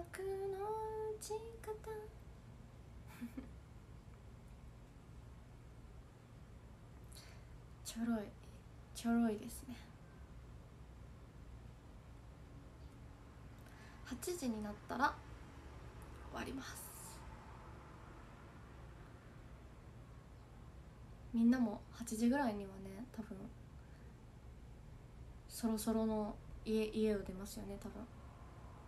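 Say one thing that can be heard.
A young woman speaks calmly and softly, close by, in short bursts with pauses.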